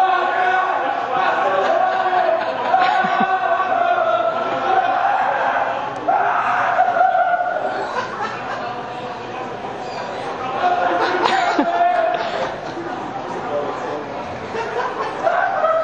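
Many people murmur and chatter in a large echoing hall.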